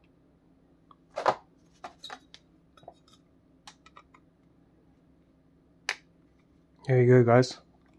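A hard plastic card case clicks and taps.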